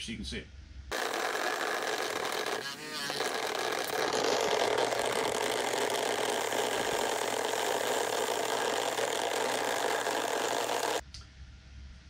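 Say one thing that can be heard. Grit pours and hisses into a wooden box.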